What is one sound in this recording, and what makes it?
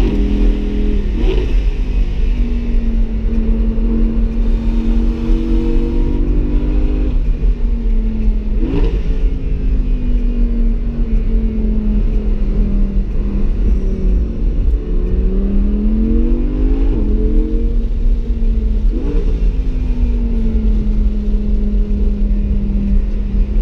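A car engine roars loudly, its pitch rising and dropping with each gear change.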